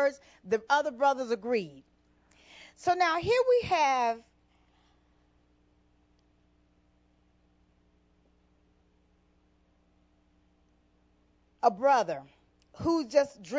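A woman preaches fervently through a microphone, with long pauses between phrases.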